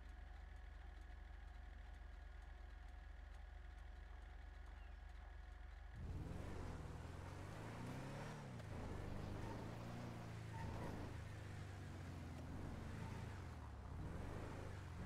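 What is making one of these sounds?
A pickup truck engine runs as the truck drives.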